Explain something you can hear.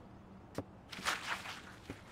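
A mop swishes across a wet floor.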